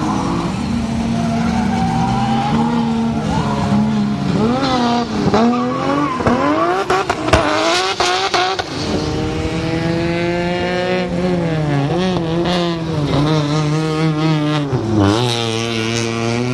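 A car engine revs hard and roars, rising and falling in pitch.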